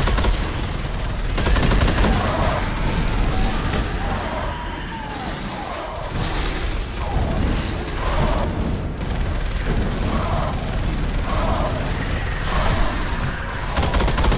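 Creatures shriek and screech as they burn.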